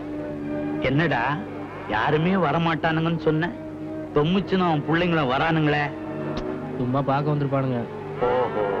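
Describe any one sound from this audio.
A middle-aged man speaks forcefully, close by.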